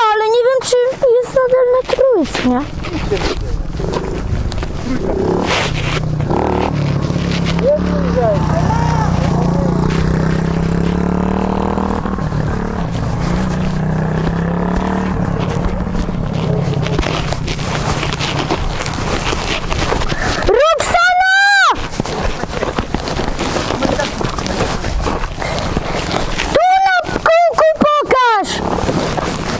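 A dirt bike engine revs loudly and close by, in short bursts.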